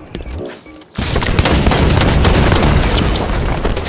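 Automatic rifle gunfire rings out in a video game.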